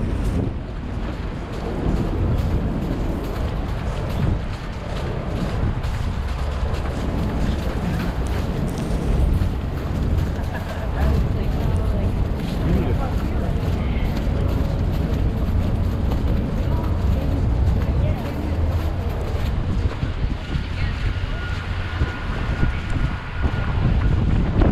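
Wind rumbles into a microphone outdoors.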